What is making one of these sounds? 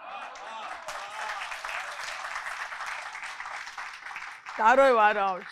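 A large audience laughs heartily.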